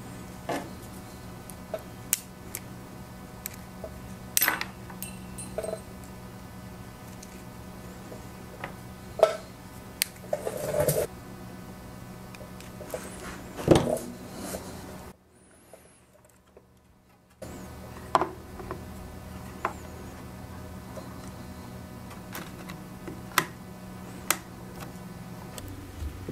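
Pliers click and snap while cutting wires.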